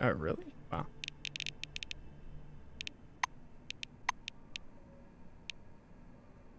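Short interface clicks tick several times.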